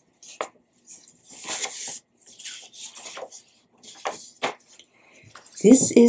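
Paper rustles as it is handled.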